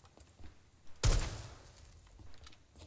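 A rifle fires a short burst of shots.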